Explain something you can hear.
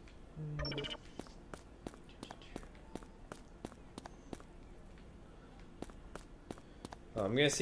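Quick footsteps patter on pavement.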